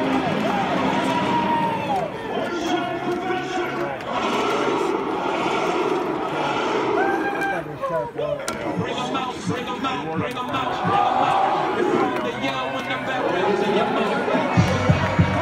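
A crowd of young people and children cheers and shouts nearby outdoors.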